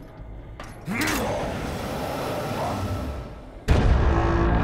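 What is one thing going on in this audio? Steam hisses loudly in bursts.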